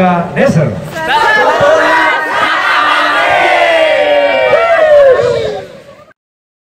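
A group of men and women shout and cheer together.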